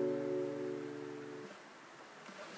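An acoustic guitar chord rings out and is cut short.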